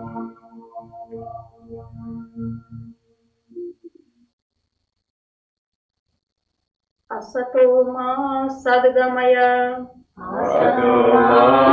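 A woman chants slowly in a sustained, sung voice.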